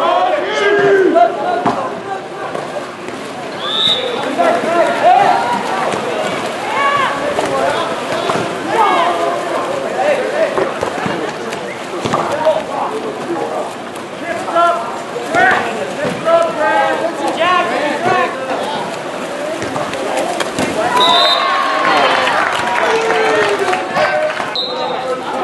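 Players splash and thrash in the water outdoors.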